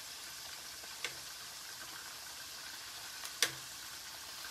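Metal tongs clink against a pot.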